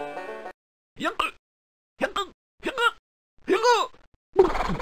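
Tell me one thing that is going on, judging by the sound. A cartoon horse hiccups loudly again and again.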